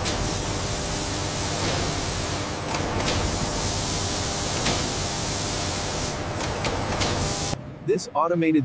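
Spray nozzles hiss.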